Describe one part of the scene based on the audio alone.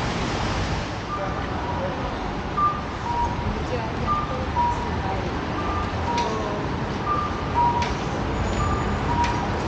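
Low city street noise rumbles steadily outdoors.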